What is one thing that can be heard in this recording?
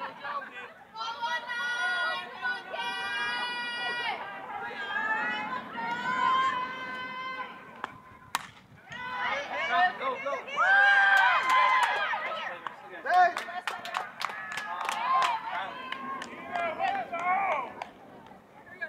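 Young women cheer and chant loudly nearby.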